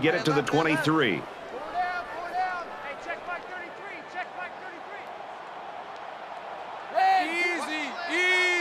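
A stadium crowd cheers steadily in the distance.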